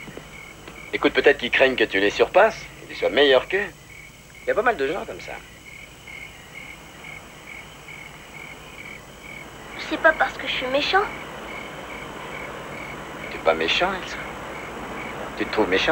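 A man speaks calmly and softly nearby.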